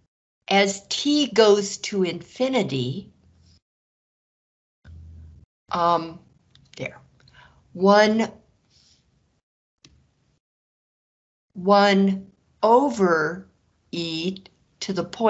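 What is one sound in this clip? A man explains calmly, heard close through a microphone.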